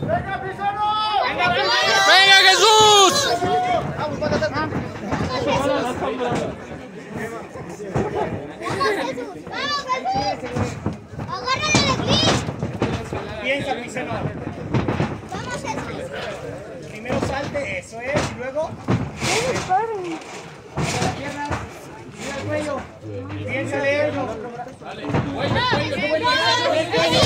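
Fighters' feet thud and shuffle on a canvas mat.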